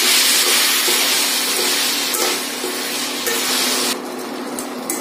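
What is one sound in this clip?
Vegetables sizzle in a hot pan.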